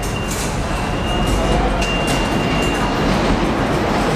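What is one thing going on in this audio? Train wheels squeal shrilly on the rails.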